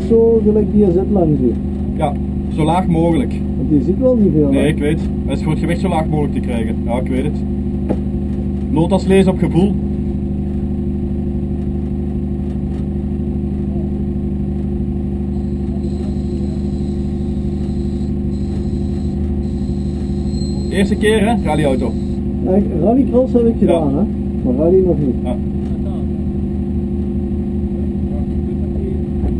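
A car engine drones steadily inside a cabin.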